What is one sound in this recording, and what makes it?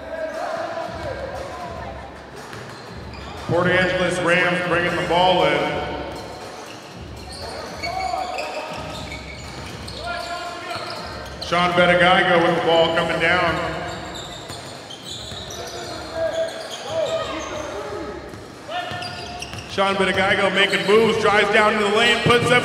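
A crowd murmurs in an echoing gym.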